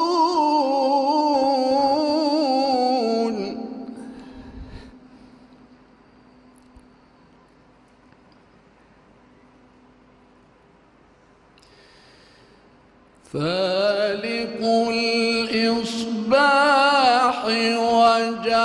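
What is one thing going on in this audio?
An elderly man chants melodiously through a microphone in a large echoing hall, pausing between phrases.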